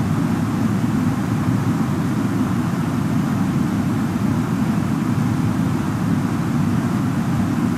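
Jet engines roar with a steady low rumble.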